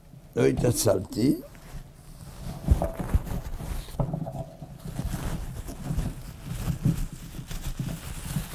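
An elderly man speaks steadily, close to a microphone.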